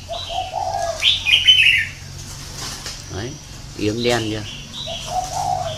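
A caged bird chirps and whistles in bright, warbling calls close by.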